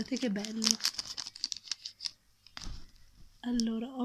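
Plastic packaging crinkles and rustles under fingers.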